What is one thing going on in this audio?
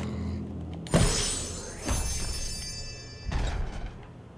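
A chiming sparkle sounds as a toy truck pops into place.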